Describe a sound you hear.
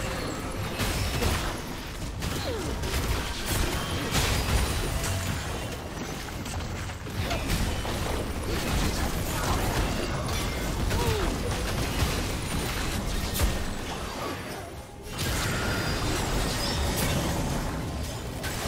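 Magic spells whoosh and burst in a fast fantasy battle.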